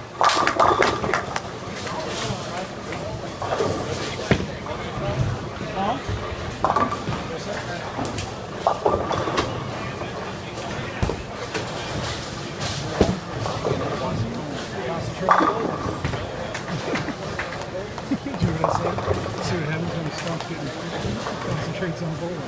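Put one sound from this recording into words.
Bowling pins crash and clatter in a large echoing hall.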